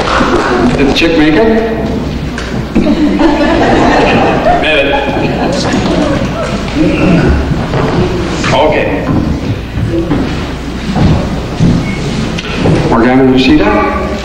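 An elderly man speaks through a microphone with animation, echoing in a large hall.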